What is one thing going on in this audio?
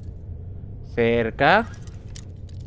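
A lock pick snaps with a sharp metallic ring.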